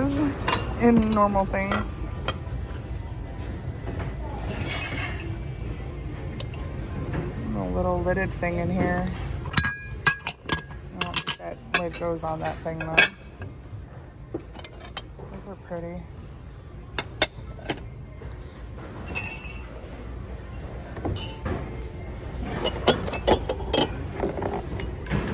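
Ceramic dishes clink together as they are handled.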